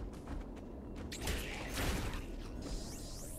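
A bright energy blast bursts loudly.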